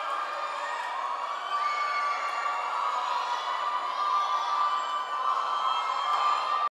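A young man sings into a microphone.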